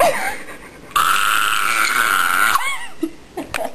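A young woman screams loudly up close.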